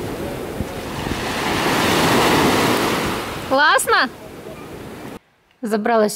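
Small waves lap and splash in the sea.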